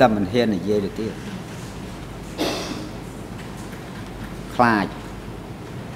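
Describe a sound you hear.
An elderly man speaks slowly and haltingly into a microphone.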